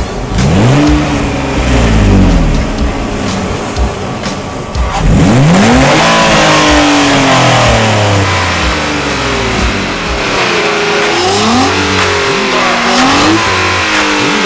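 A car engine revs loudly several times and drops back to a rumbling idle.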